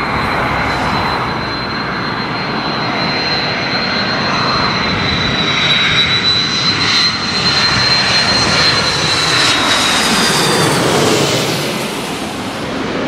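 A jet airliner roars and whines loudly as it passes low overhead.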